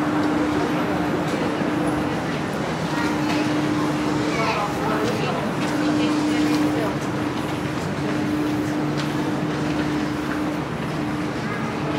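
A stopped train hums steadily nearby.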